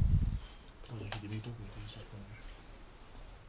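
A young man speaks quietly nearby.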